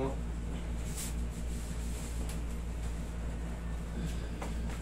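Fabric rustles as a wrap is pulled around a man's waist.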